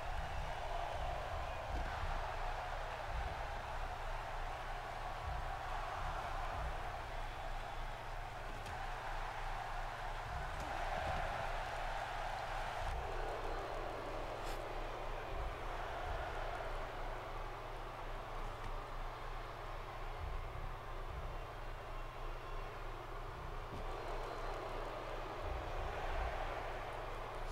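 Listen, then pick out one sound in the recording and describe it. A large crowd cheers and roars throughout in a big arena.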